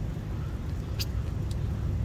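Hands slap down onto paving stones.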